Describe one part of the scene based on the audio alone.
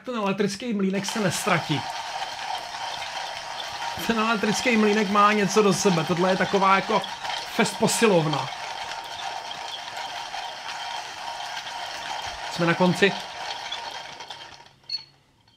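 A hand coffee grinder grinds beans with a steady rasping whir.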